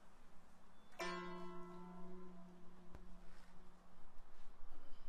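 A plucked lute rings out with a single strong note that slowly dies away.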